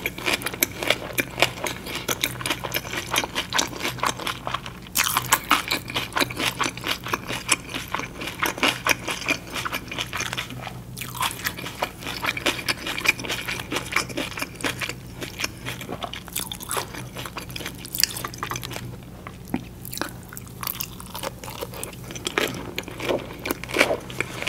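A young woman chews with wet, crunchy mouth sounds close to a microphone.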